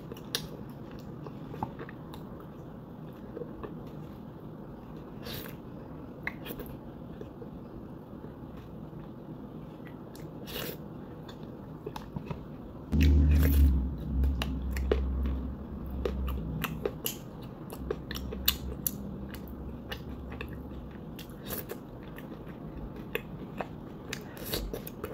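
A young woman chews and smacks her lips close up.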